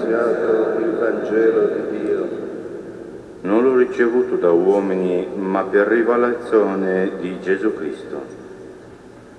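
A man chants in a large echoing hall, heard through a microphone.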